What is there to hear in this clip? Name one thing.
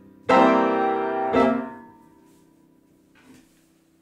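Loud piano chords are struck and ring out slowly.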